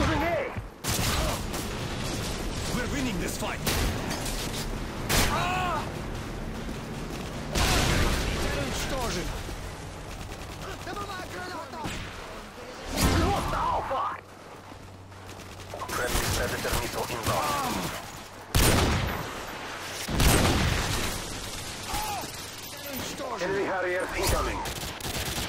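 Gunshots bang sharply now and then, with a short echo.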